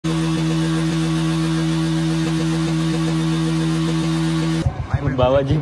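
A motorcycle engine runs loudly.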